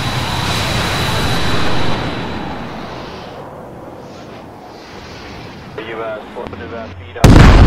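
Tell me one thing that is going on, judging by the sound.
A missile launches with a rushing whoosh.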